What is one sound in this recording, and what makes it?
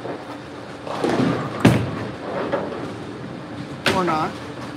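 A bowling ball thuds onto a lane and rolls away.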